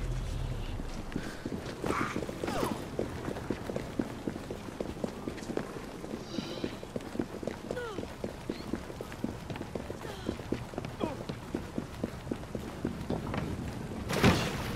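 Footsteps run quickly over wet stone.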